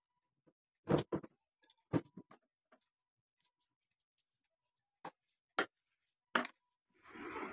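Objects clatter against a sewing machine.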